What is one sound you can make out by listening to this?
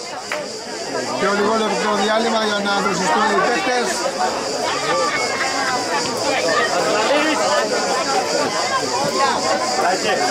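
Young men shout to each other from across an open field.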